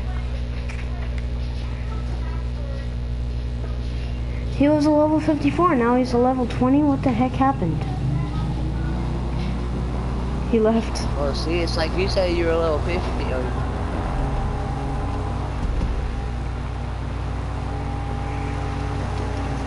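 A motorbike engine drones steadily.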